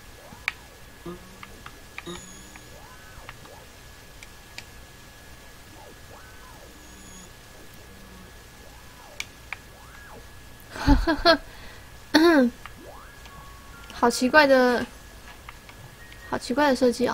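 Soft electronic blips sound as a small game character jumps.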